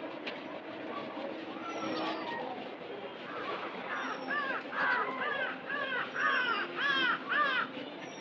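A man wipes a chalkboard with a cloth.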